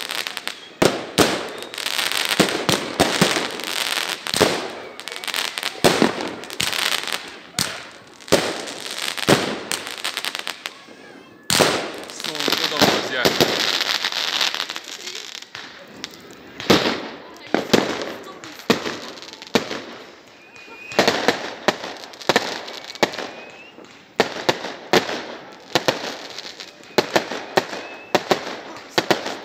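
Firework sparks fizz and hiss.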